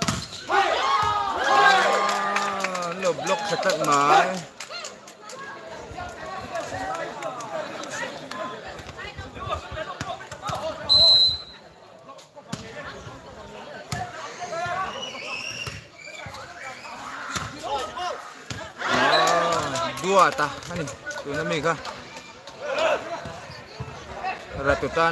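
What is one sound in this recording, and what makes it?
A volleyball is struck with dull slaps.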